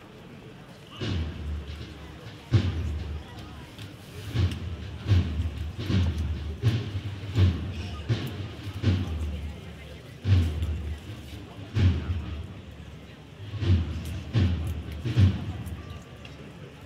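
A brass band plays a slow march nearby.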